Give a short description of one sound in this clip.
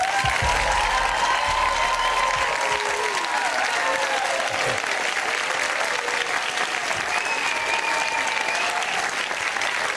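A large audience applauds loudly throughout.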